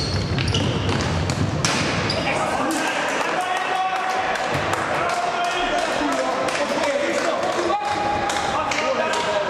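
A ball is kicked with a sharp thud.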